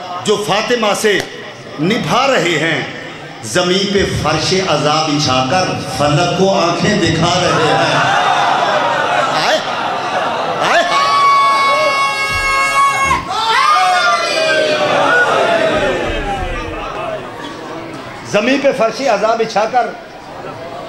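A man speaks passionately into a microphone, his voice carried over loudspeakers.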